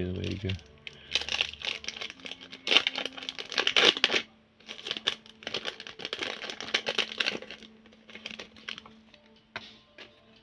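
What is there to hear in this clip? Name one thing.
A plastic wrapper crinkles close by.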